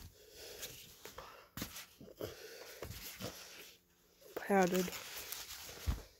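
Fabric rustles up close.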